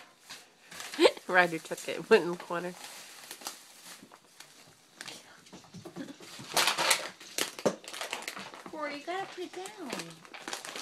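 A dog whines and yelps in high, wavering cries.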